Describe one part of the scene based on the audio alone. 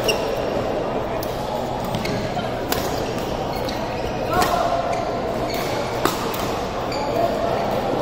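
A steady murmur of play fills a large echoing hall.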